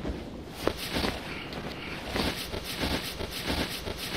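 Paper rustles in a man's hands.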